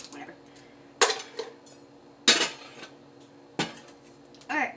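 Ice clinks and rattles in a metal shaker.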